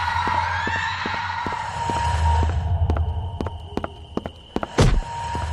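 Quick footsteps tap on a hard floor.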